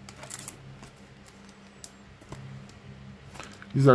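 Paper sheets rustle as hands lift them.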